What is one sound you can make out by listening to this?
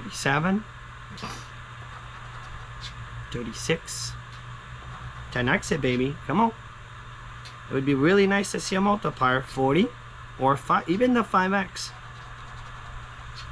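A chip scratches a card with a rasping scrape.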